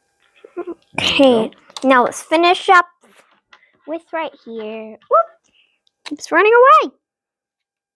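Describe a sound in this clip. A young girl speaks in a high voice.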